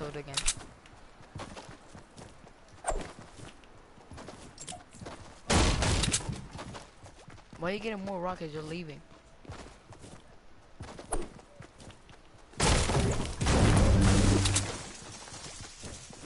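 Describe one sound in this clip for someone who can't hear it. Footsteps patter quickly on grass and pavement.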